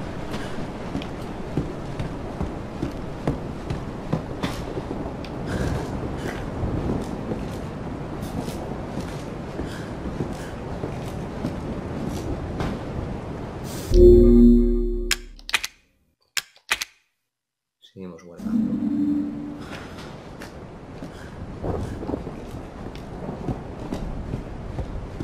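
Footsteps thud slowly on creaky wooden floorboards.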